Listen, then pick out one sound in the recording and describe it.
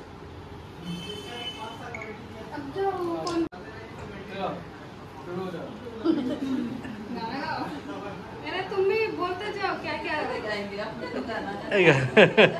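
Young women talk and laugh nearby.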